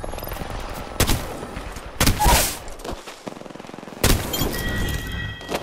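A rifle fires in short, loud bursts.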